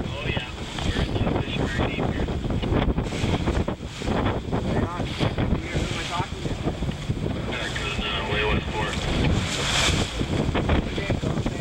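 Choppy waves slosh and slap against each other.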